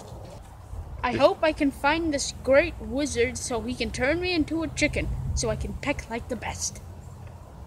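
A young boy talks close by, with animation.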